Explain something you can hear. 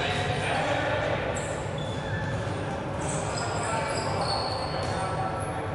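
Players shout and call out to each other in a large echoing hall.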